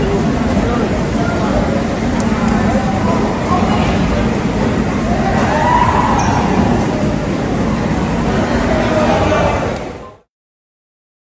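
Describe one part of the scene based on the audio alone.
A crowd of men and women chatter and call out nearby, outdoors.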